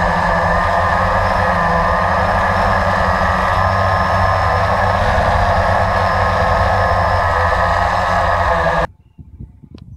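A small drone's propellers whine loudly and steadily up close.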